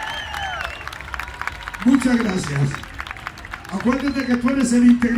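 A crowd claps along.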